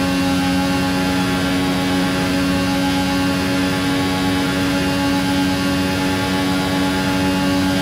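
A racing car engine screams steadily at high revs.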